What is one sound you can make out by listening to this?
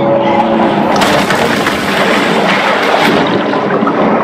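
Water splashes and churns at the surface.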